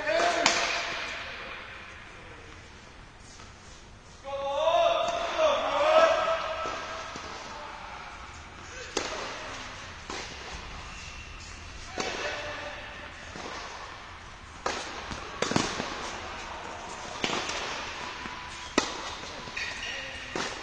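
Tennis rackets strike a ball back and forth in a large echoing hall.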